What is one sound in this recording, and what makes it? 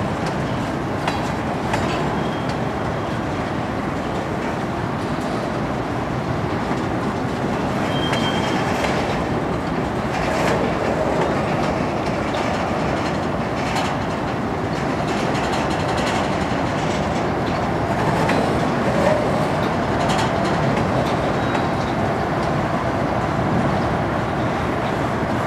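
A freight train's cars roll past with a steady rumble.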